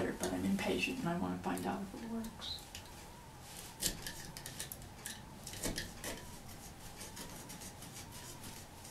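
A small brush scratches and taps against a hard surface.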